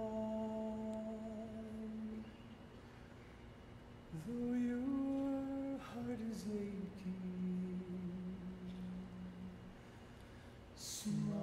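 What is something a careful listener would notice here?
A middle-aged man sings long held notes into a microphone.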